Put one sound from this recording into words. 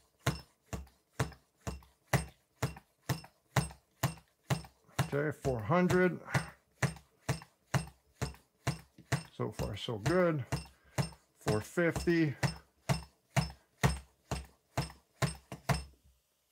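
A small hand air pump puffs in quick, steady strokes.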